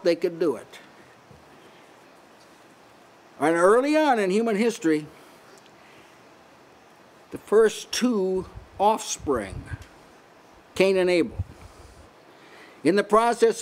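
An elderly man speaks slowly and with feeling into a microphone, with pauses between phrases.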